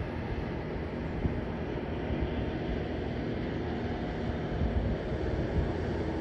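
A train rumbles along the tracks and fades into the distance.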